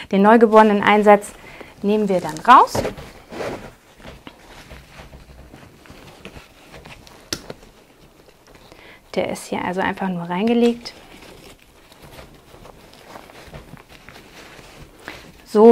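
Straps and buckles click and rustle.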